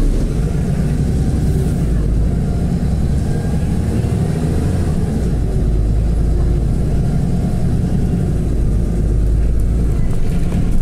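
A vehicle's engine rumbles steadily while it drives along a street.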